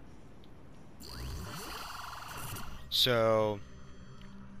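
An electronic glitch buzzes and crackles.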